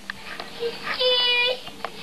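A little girl squeals in a high voice.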